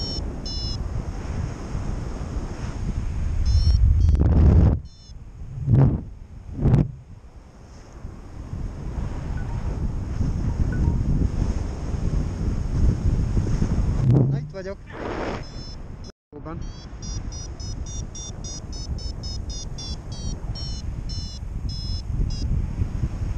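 Wind rushes and buffets loudly throughout, as if outdoors in flight.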